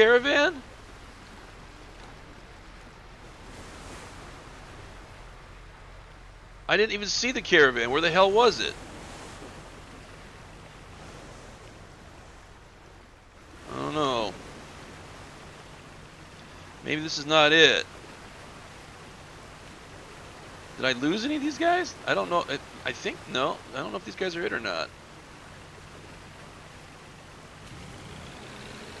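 Waves splash against a moving boat's hull.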